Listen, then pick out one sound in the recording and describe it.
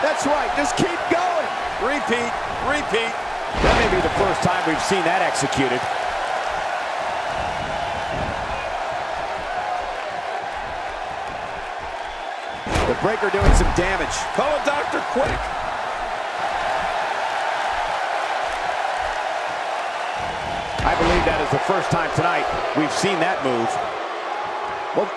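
A large crowd cheers and murmurs steadily in an echoing arena.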